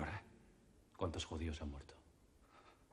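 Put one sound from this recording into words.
A young man speaks firmly.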